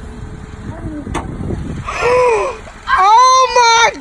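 A car hood clunks open.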